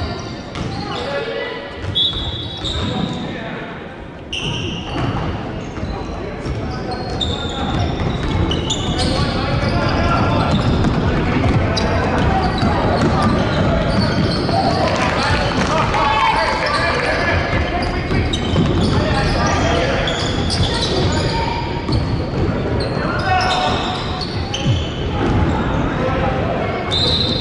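A crowd of spectators talks and calls out in a large echoing hall.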